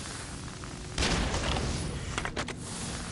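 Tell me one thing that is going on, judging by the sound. An arrow is loosed from a bow with a sharp snap.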